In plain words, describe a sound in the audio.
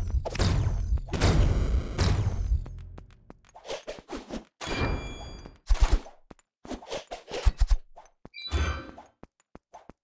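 Video game blades whoosh and clash in quick bursts.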